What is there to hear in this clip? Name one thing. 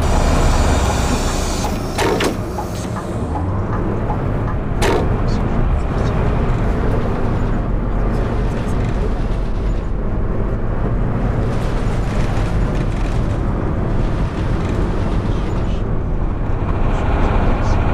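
A bus engine hums steadily while driving along a street.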